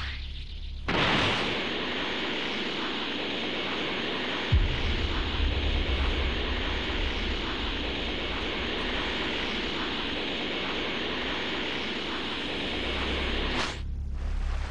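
A rushing wind whooshes steadily as a character flies.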